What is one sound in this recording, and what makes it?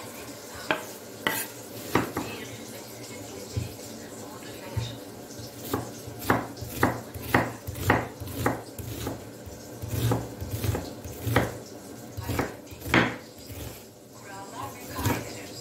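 A knife taps sharply on a wooden chopping board, slicing a boiled egg.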